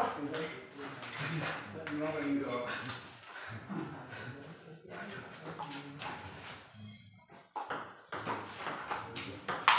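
Men talk nearby in an echoing room.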